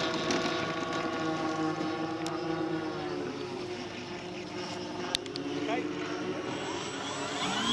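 Several small engines of a model aircraft drone steadily close by.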